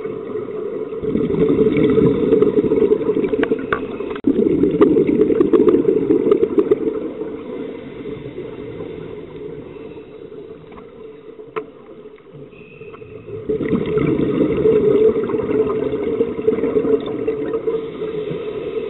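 Scuba breathing bubbles rush and gurgle loudly underwater, in bursts.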